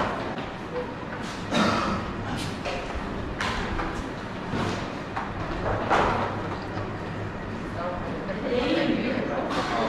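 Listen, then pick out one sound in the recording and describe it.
Dishes and trays clatter.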